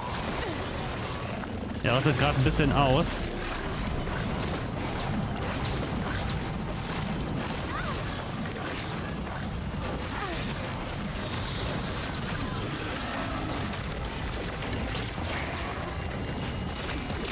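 Fire crackles and hisses.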